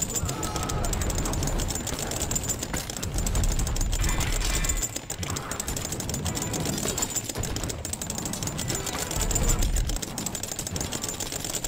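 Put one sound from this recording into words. Explosions boom and crackle again and again.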